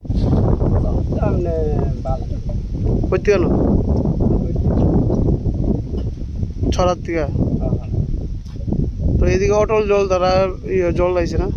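A second man speaks close by, outdoors in wind.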